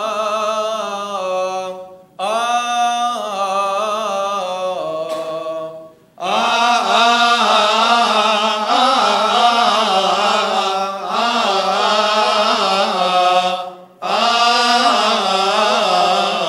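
A choir of men chants together through microphones, in a reverberant hall.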